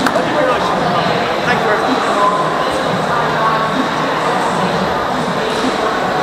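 Many men and women chatter at once in a large, echoing hall.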